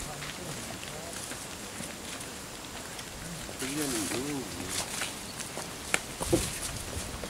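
Footsteps crunch on loose stones outdoors.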